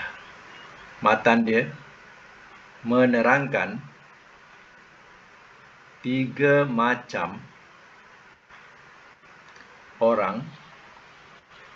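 A woman speaks in short phrases over an online call.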